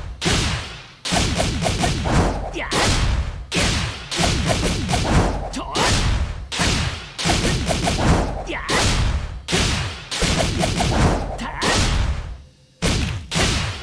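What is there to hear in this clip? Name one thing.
Rapid punching and kicking hits strike a target over and over with bursts of whooshing impacts.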